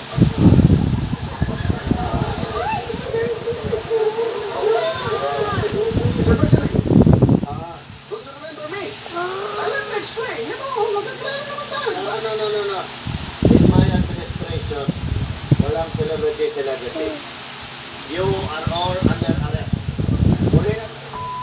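A child talks excitedly close to the microphone.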